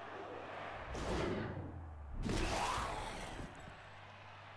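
A heavy body crashes down with a whooshing thud.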